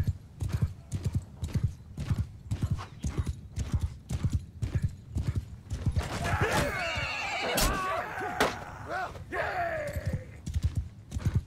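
A horse gallops with steady, heavy hoofbeats.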